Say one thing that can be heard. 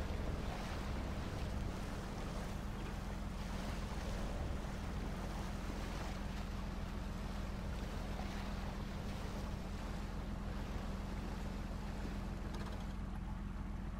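Water sloshes and churns around heavy wheels.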